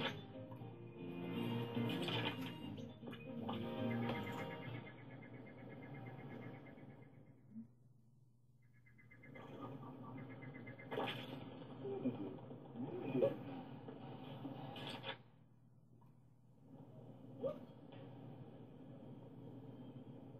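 Video game music and effects play from a television's speakers.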